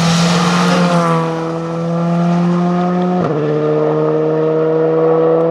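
A rally car engine revs high through gear changes as the car drives away into the distance.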